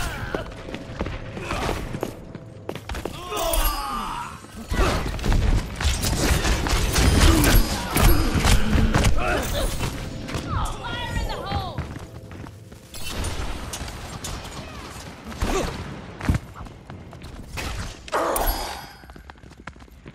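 Video game gunfire and blasts crackle in bursts.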